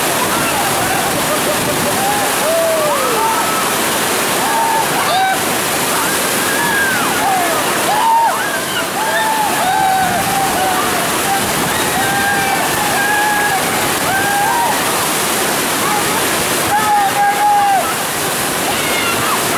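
White water roars steadily through rapids.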